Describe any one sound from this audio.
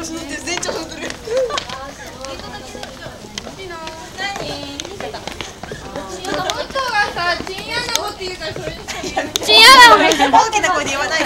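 Several young people talk and call out excitedly nearby.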